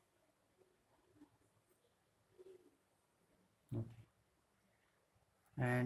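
A pencil compass scratches faintly on paper.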